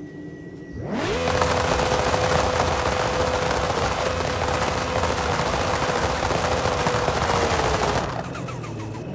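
A sports car engine roars loudly and holds a high pitch.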